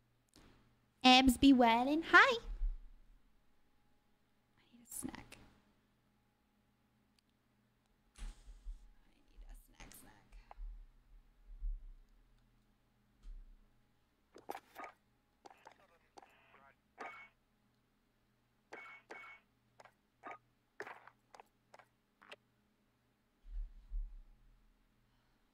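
A young woman speaks close into a microphone.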